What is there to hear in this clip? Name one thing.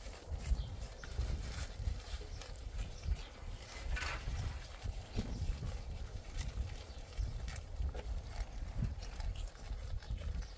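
A goat munches and crunches leafy greens close by.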